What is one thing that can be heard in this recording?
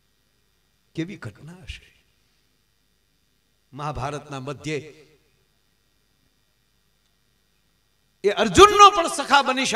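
A middle-aged man speaks with animation through a microphone, in short bursts.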